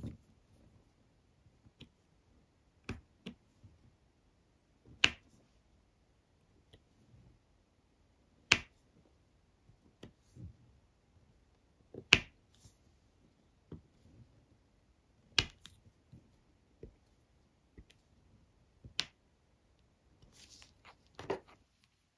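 A pen tool taps and clicks as it sets small beads one by one.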